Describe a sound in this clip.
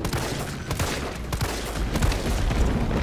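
Gunshots bang sharply a few times.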